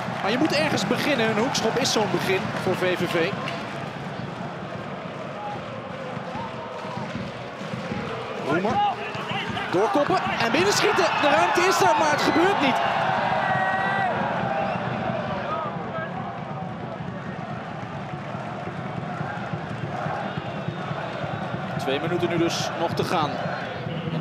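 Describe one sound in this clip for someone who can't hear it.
A small crowd murmurs and calls out across an open stadium.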